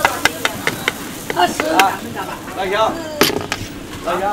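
A metal ladle clinks and scrapes against a metal pot.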